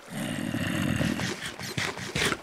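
A game character munches food with crunchy chewing sounds.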